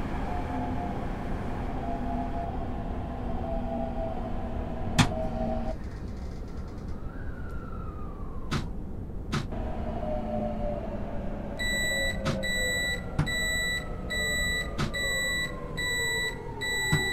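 A train motor hums steadily and slowly drops in pitch as the train slows.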